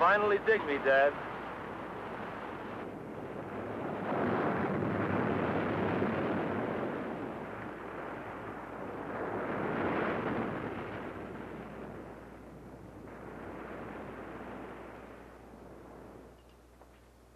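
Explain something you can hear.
Waves surge and break on a shore.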